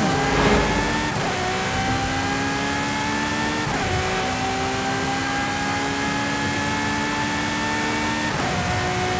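A race car engine roars at high revs, climbing in pitch and dropping briefly at each gear change.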